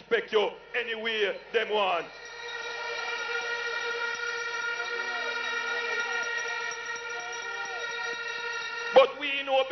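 A man speaks forcefully through a loudspeaker.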